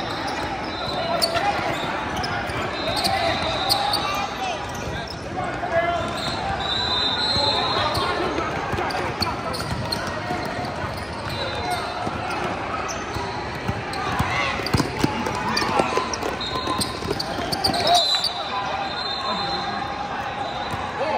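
Players call out to one another in a large echoing gym.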